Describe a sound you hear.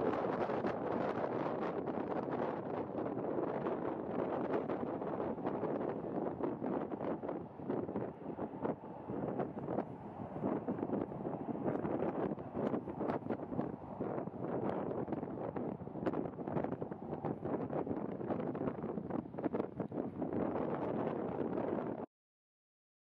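Strong wind buffets and roars loudly across the microphone outdoors.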